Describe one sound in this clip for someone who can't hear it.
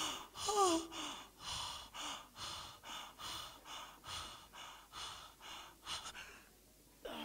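A man prays loudly with animation nearby.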